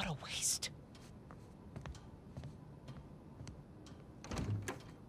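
Footsteps walk away softly on a hard floor.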